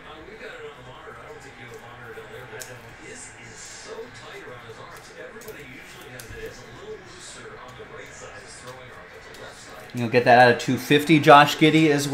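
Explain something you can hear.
Trading cards shuffle and slide against each other.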